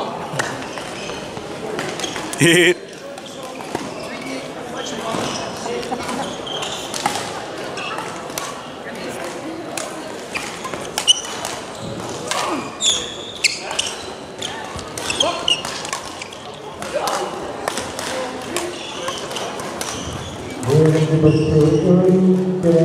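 Several people talk in the background of the echoing hall.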